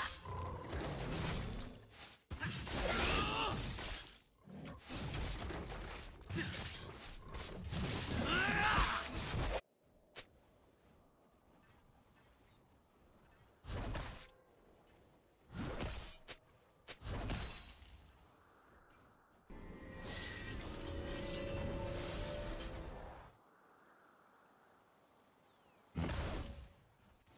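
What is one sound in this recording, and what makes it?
Magic blasts and weapon strikes clash in a fast fight.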